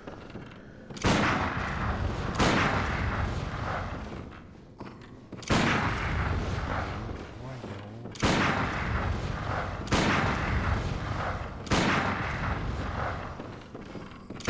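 A weapon swings and strikes with heavy, sudden impacts.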